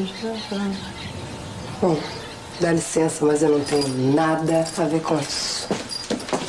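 A young woman speaks sharply and with feeling.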